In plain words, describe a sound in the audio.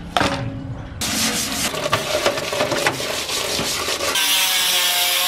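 Water splashes and pours onto a metal case.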